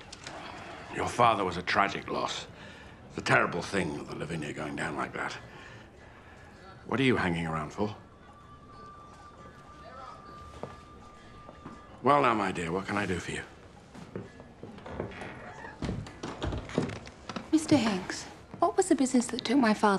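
An older man talks with animation, close by.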